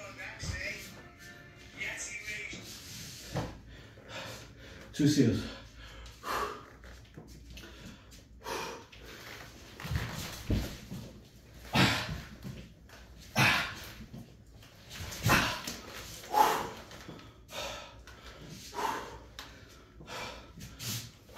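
Footsteps thud on a rubber floor.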